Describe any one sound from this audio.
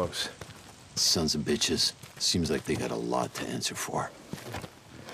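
A second man answers in a low, rough voice.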